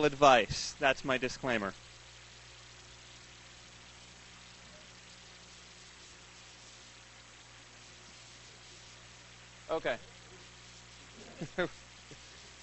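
A man speaks into a microphone in short bursts, with long pauses.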